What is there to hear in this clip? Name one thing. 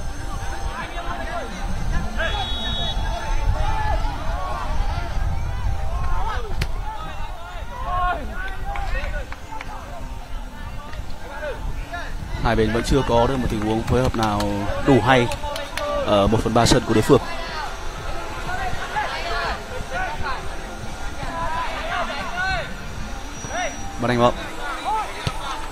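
A ball thuds as players kick it on a pitch.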